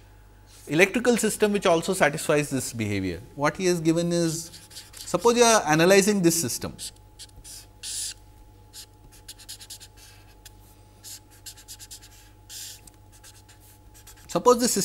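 A man speaks calmly and clearly, as if lecturing, close to a microphone.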